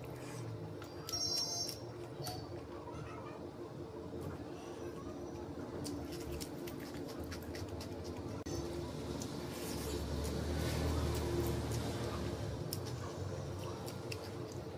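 Fingers squish and mix soft rice and gravy.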